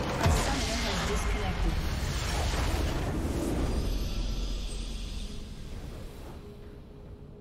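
A huge explosion booms and rumbles, then slowly fades.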